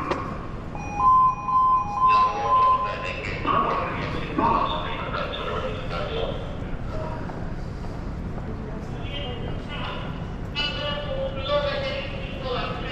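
Traffic hums steadily in a city street outdoors.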